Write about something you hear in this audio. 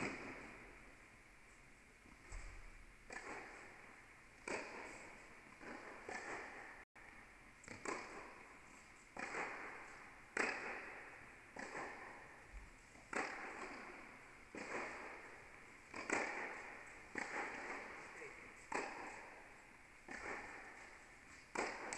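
Tennis balls are struck with rackets, echoing in a large hall.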